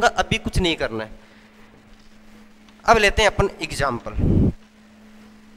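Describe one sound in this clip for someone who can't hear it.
A young man speaks through a clip-on microphone.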